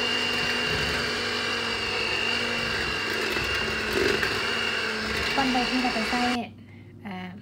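An electric hand mixer whirs steadily as it beats batter in a bowl.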